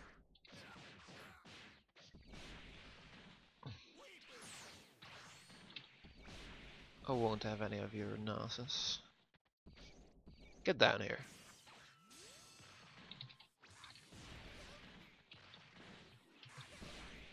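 Energy blasts whoosh and burst.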